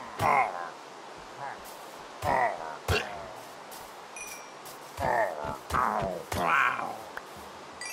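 A sword strikes with sharp hits.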